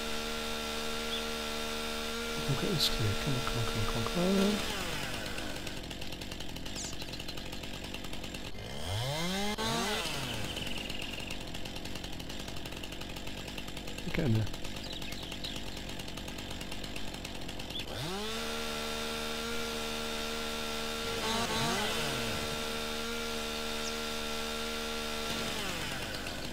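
A chainsaw buzzes loudly as it cuts through wood.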